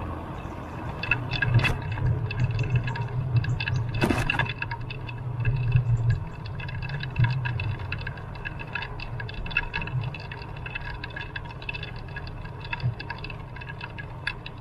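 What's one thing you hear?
Tyres rumble and rattle over a brick road.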